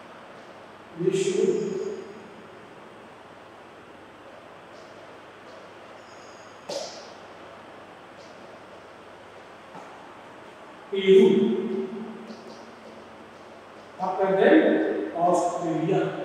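A man speaks in short bursts, close by in a room.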